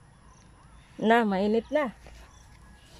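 A woman close by calls out loudly in a sing-song voice.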